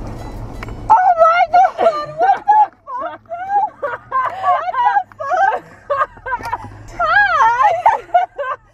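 A young woman talks excitedly and laughs close by.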